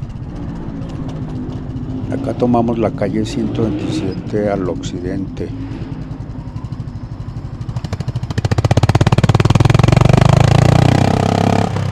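A motorcycle engine rumbles at low speed, then revs up loudly as the bike accelerates.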